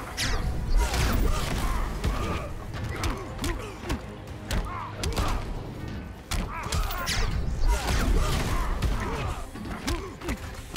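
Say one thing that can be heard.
Punches and kicks land with heavy thuds and cracks.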